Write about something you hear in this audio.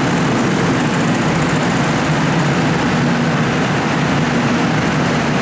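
Go-kart engines buzz loudly as karts race past close by.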